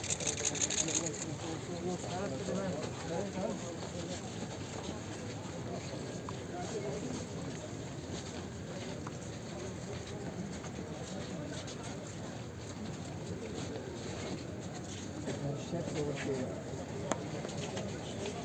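Footsteps shuffle on paving as a crowd walks.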